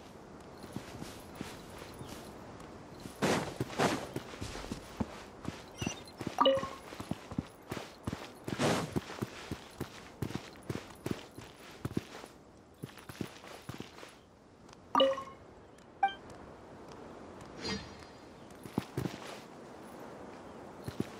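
Footsteps crunch quickly over sand.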